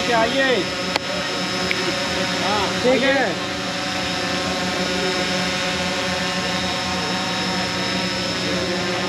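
A drone buzzes and whines steadily overhead.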